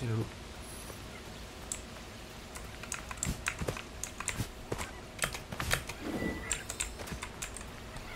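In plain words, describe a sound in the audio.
Footsteps patter quickly on the ground.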